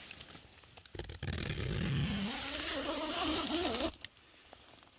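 A tent zipper is pulled open with a rasping sound.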